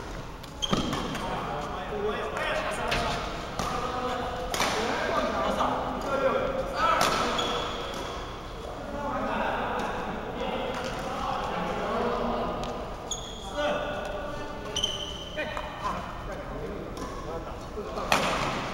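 Shuttlecocks are struck with sharp pops of badminton rackets.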